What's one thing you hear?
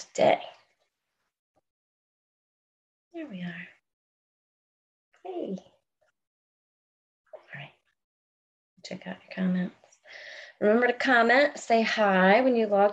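A woman speaks in short bursts through an online call, then talks with animation.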